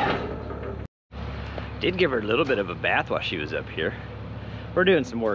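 A tracked loader's engine whines and revs.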